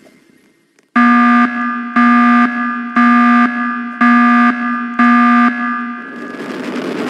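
A countdown beeps five times, once a second.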